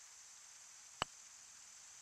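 A putter taps a golf ball with a short click.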